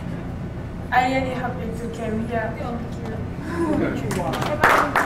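A young woman speaks into a microphone in a calm, even voice.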